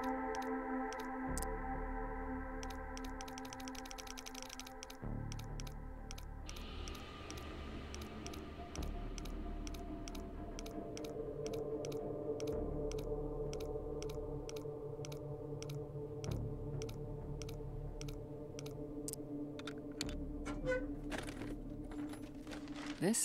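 A safe's combination dial clicks steadily as it turns.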